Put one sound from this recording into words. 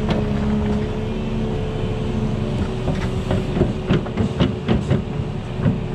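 An excavator engine rumbles and whines steadily close by.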